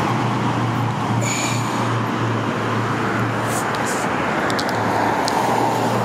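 A car drives past on a nearby road with a steady roar of tyres.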